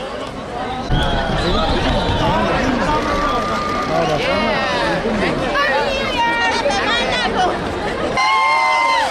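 A young woman talks cheerfully into a microphone.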